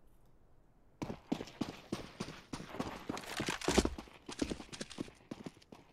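Footsteps thud quickly on hard ground as a soldier runs.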